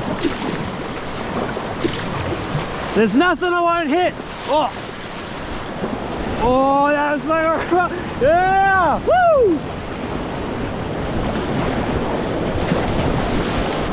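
Whitewater rushes and roars loudly.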